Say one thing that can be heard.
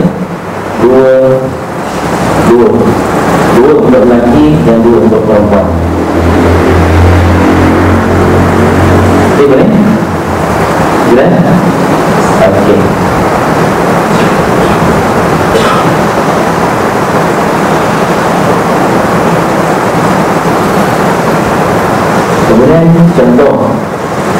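A man speaks calmly through a headset microphone in a slightly echoing room.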